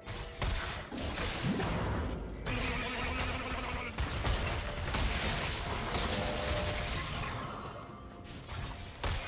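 Characters' weapons strike with sharp hits.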